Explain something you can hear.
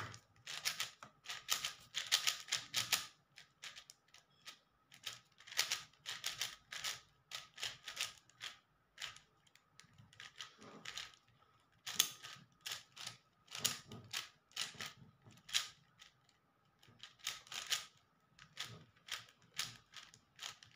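A plastic puzzle cube clicks and clatters in quick bursts as its layers are turned fast.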